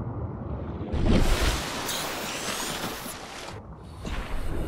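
Water splashes loudly when breaking the surface.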